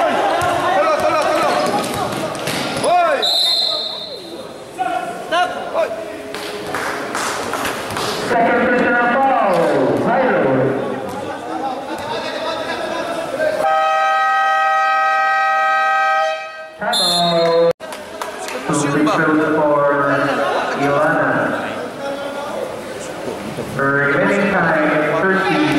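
Young men shout and chatter loudly in a large echoing hall.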